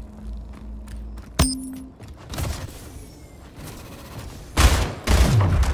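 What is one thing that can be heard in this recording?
A video game rifle fires.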